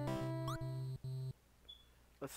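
A short electronic video game jingle plays.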